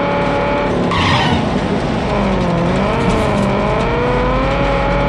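A car engine hums steadily, rising and falling in pitch as the car drives.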